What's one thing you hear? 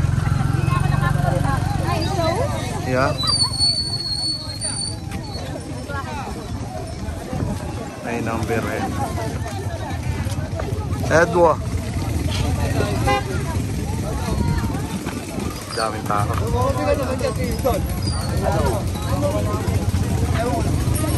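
A crowd of men and women chatters loudly and overlapping, close by outdoors.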